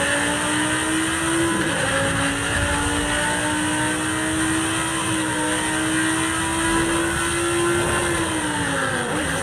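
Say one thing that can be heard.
A sports car engine roars at high speed, shifting gears.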